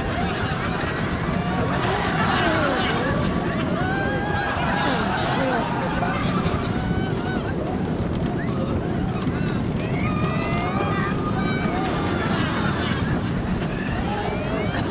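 Riders scream and shout with excitement.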